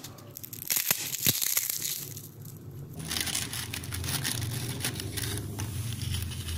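Dry, crisp wafers rustle and crackle as a hand handles them.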